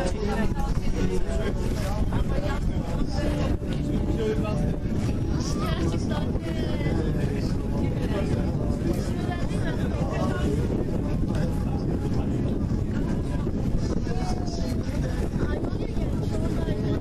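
A crowd of young men and women chatter nearby.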